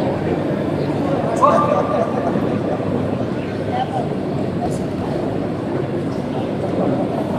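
A crowd murmurs steadily in a large echoing arena.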